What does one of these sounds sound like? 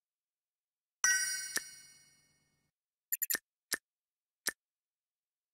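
Short bright menu chimes ring out.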